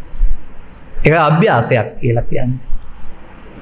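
An elderly man speaks calmly and warmly into a microphone.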